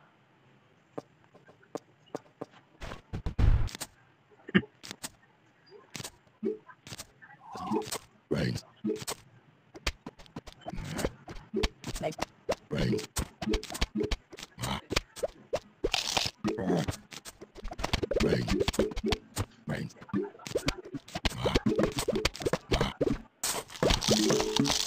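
Short soft pops and plops sound as plants are set down.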